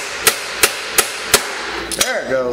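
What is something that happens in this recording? A ratchet wrench clicks quickly.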